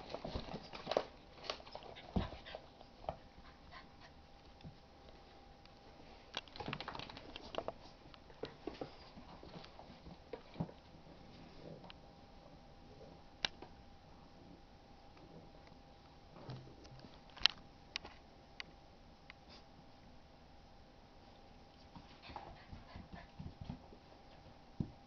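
A dog growls playfully.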